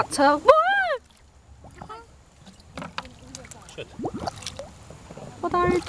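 Water gurgles and bubbles as a bottle fills underwater.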